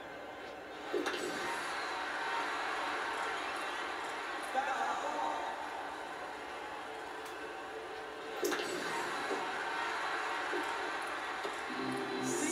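A crowd cheers through a television speaker.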